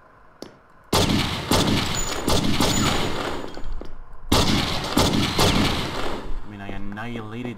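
Rapid gunshots fire in a loud, echoing burst.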